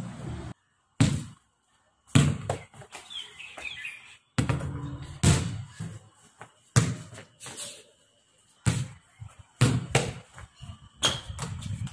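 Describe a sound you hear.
A basketball bounces with sharp thumps on hard paving.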